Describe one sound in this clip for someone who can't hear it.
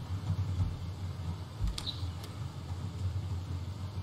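A wooden door clicks and swings open.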